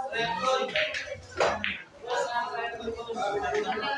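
Pool balls knock together and roll across the table.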